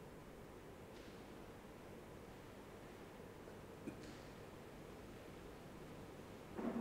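Footsteps sound softly on a hard floor.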